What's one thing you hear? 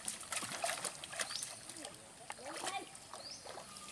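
A hooked fish splashes at the surface of the water.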